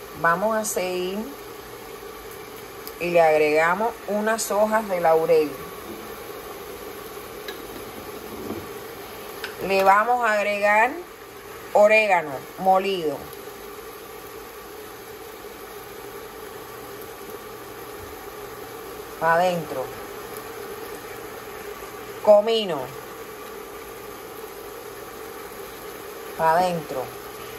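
Onions sizzle softly in hot oil in a pot.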